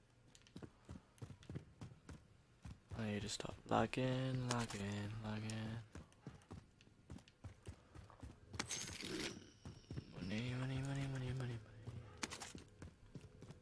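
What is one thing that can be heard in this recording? Footsteps tap steadily on hard stairs.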